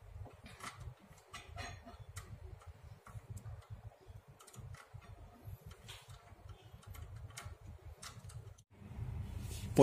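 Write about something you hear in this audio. A metal lock mechanism clicks and rattles softly as it is turned by hand.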